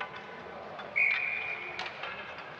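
A referee's whistle blows sharply in an echoing arena.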